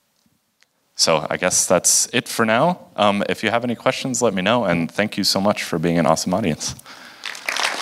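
A young man speaks into a microphone in a large hall.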